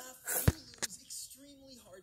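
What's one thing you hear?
A boy laughs close by.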